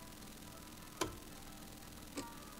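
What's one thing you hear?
A button clicks sharply.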